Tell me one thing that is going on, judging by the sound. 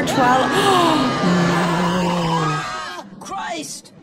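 A woman gasps loudly close to a microphone.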